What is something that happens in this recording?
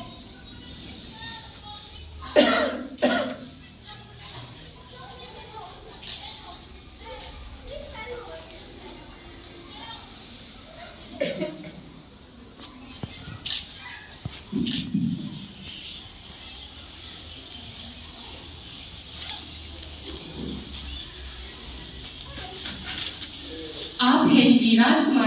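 Men and women murmur and chat quietly in a room.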